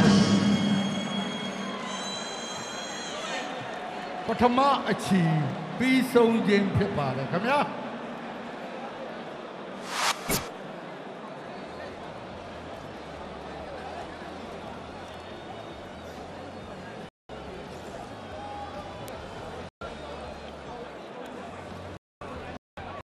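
A large crowd murmurs in a big echoing hall.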